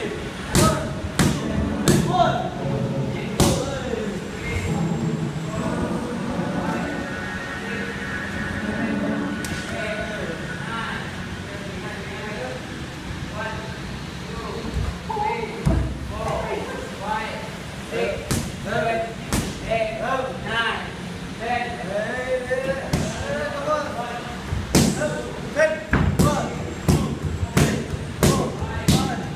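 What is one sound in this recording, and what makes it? Kicks and punches thump against padded targets.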